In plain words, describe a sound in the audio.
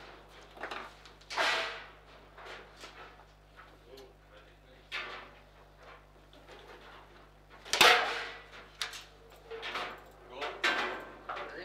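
A hard plastic ball cracks against the walls and figures of a foosball table.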